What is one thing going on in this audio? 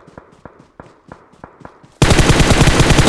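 Footsteps tap quickly on the ground.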